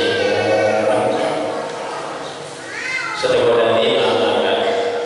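An elderly man chants in a drawn-out, melodic voice through a microphone and loudspeakers.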